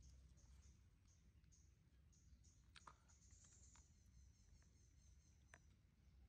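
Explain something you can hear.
A thin branch creaks and rustles as a small monkey climbs on it.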